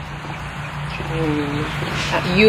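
A second young woman speaks nearby.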